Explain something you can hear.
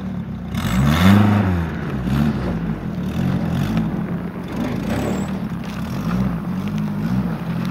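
Car tyres crunch and spin through deep snow.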